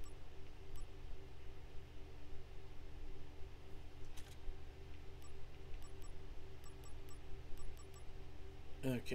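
Soft menu clicks tick at short intervals.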